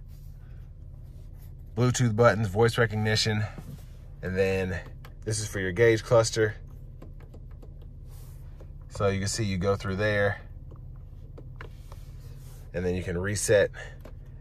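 A finger presses buttons on a steering wheel with soft clicks.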